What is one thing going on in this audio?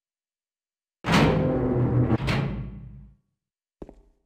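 A heavy door swings open with a loud rumbling creak.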